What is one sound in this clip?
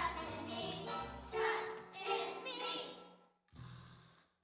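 A group of children sings together through a loudspeaker in a large hall.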